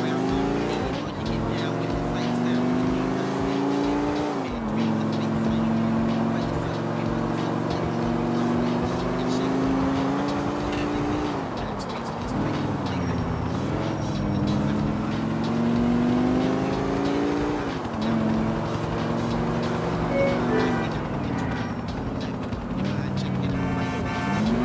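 A car engine revs up and drops as the gears shift.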